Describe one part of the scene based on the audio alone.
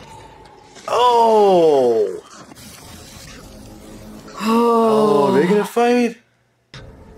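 A young man groans and speaks in reaction close to a microphone.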